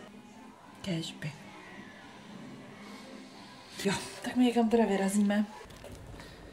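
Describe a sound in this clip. A young woman speaks calmly close to the microphone.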